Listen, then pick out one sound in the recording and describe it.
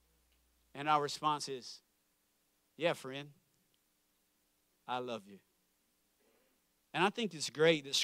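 A young man speaks calmly through a microphone, with short pauses.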